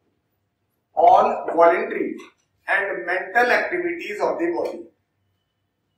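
A man speaks calmly into a clip-on microphone.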